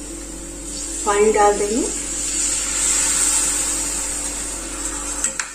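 Liquid pours and splashes into a pot.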